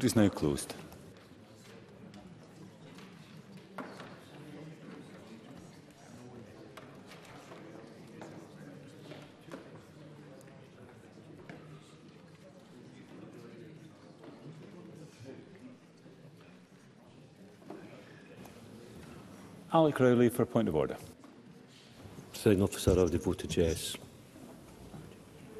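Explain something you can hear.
Many people murmur quietly in a large hall.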